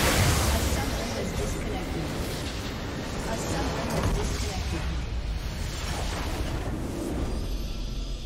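Magical blasts and clashing battle effects crackle and boom loudly.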